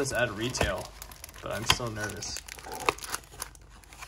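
A cardboard box flap is pulled open.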